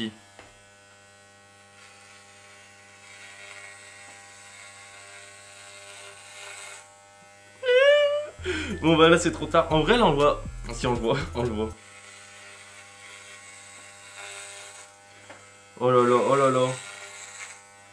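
Electric hair clippers buzz steadily through hair.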